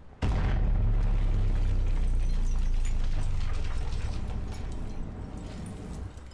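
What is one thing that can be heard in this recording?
A large explosion booms and rumbles, then fades.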